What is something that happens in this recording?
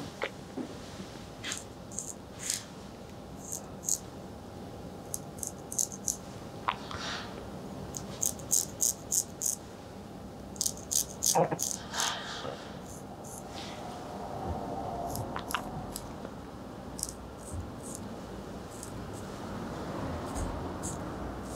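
A razor blade is stropped with quick, light strokes.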